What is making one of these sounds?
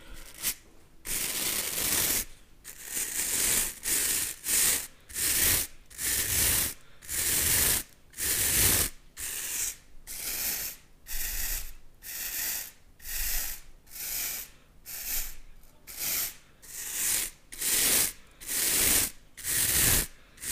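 Stiff plastic brush bristles scratch and rustle in rhythmic strokes right against a microphone.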